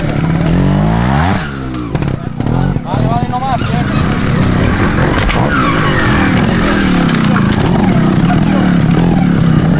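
A motorcycle engine revs up and down close by.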